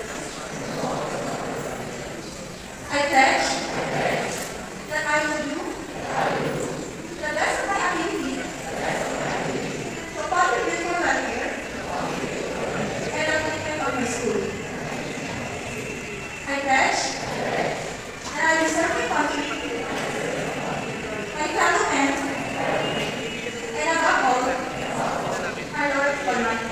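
A large group of young people recite words together in unison, echoing in a large hall.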